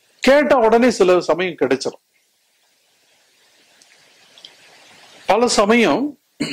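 An elderly man speaks with animation through a microphone.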